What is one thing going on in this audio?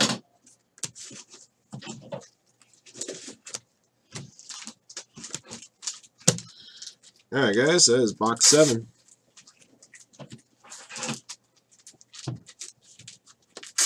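Trading cards rustle and flick as they are shuffled.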